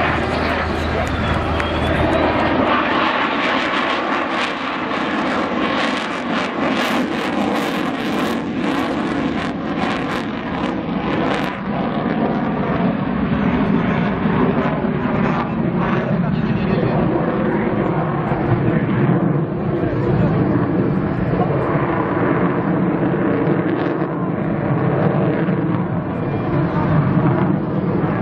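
A jet engine roars loudly overhead, rumbling as the plane passes.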